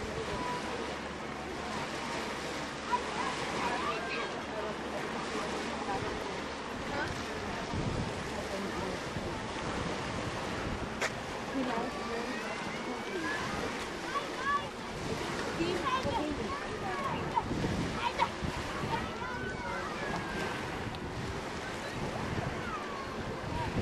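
Small waves lap gently at the shore.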